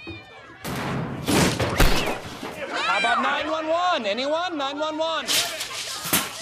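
A woman screams loudly.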